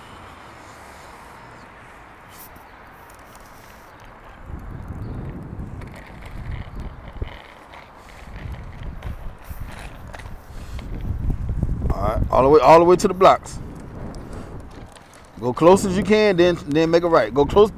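Small bicycle wheels and training wheels roll and rattle over concrete.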